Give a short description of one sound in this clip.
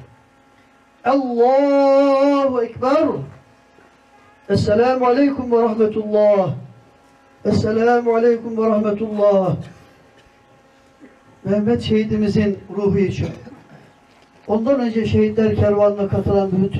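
A man chants a prayer in long, drawn-out phrases through a loudspeaker, with pauses between them, outdoors.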